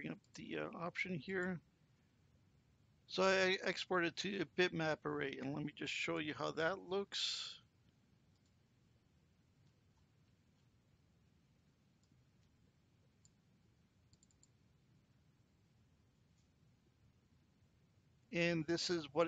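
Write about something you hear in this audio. An elderly man speaks calmly into a nearby microphone, pausing now and then.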